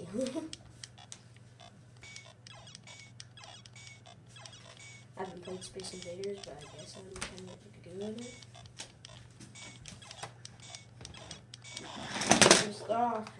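A handheld game console beeps and bleeps with rapid electronic game sounds.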